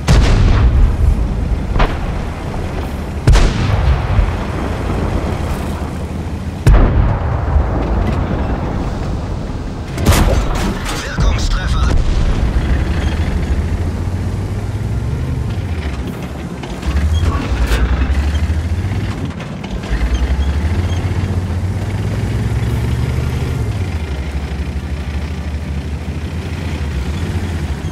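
A tank engine rumbles and roars steadily.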